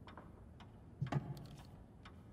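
A wooden limb clicks into place with a hollow knock.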